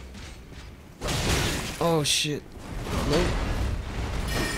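Swords clash and ring out in a fight.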